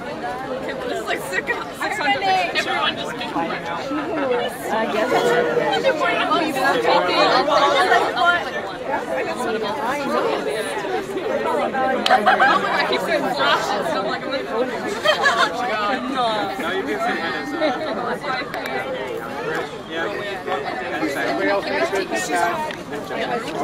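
A group of young men and women chatter and laugh together nearby outdoors.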